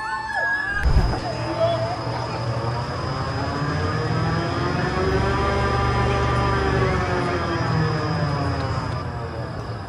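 A tall fairground ride's machinery hums and whirs, rising and falling in pitch.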